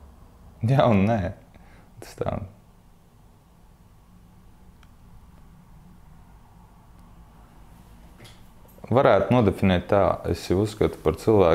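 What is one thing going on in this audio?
A young man speaks calmly and thoughtfully into a close microphone, pausing between phrases.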